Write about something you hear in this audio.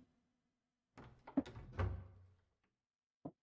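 Small objects clatter and knock as a cupboard is searched.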